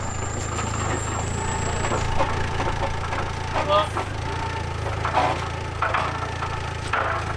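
Metal clanks as an engine is loaded onto a forklift.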